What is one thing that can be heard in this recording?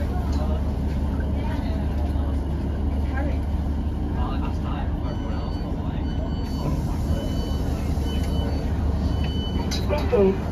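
A train rumbles steadily as it pulls away.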